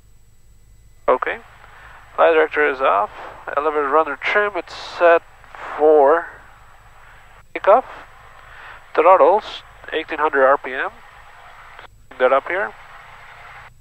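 A man speaks calmly over a headset radio.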